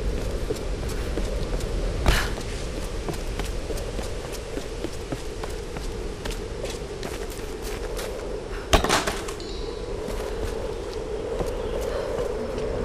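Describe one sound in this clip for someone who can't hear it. Footsteps tread on stone and dirt at a steady pace.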